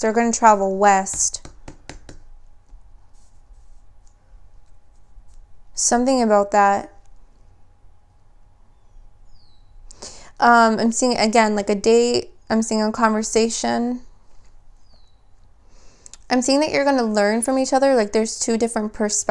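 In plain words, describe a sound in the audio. A young woman speaks calmly and close by, in bursts with pauses.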